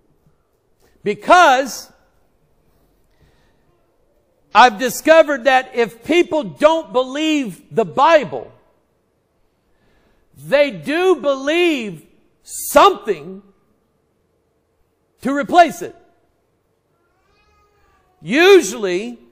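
A middle-aged man speaks with animation into a microphone, with pauses between phrases.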